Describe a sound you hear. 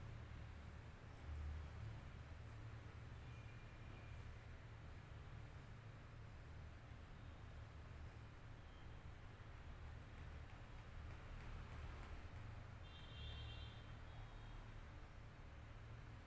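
Fingers rub and squelch through wet, soapy hair, close by.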